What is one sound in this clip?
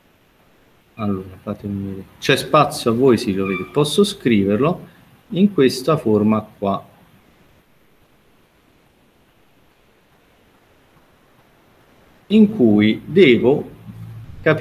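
A man speaks calmly over an online call, explaining with pauses.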